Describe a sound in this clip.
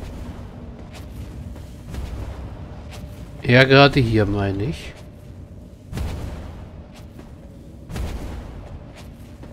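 Heavy footsteps thud slowly on a metal floor.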